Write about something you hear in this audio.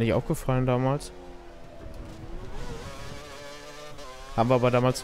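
A racing car engine whines at high revs, rising and dropping in pitch with gear changes.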